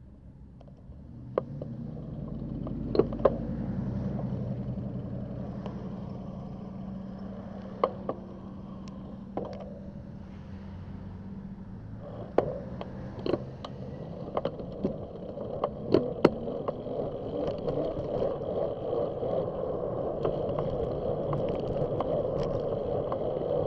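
Cars and trucks pass close by on a road.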